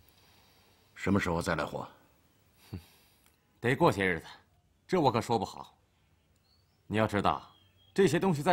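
A middle-aged man speaks calmly and quietly up close.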